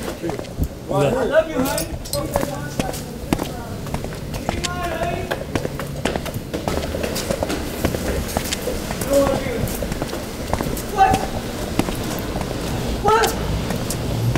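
A young man speaks in short bursts close by.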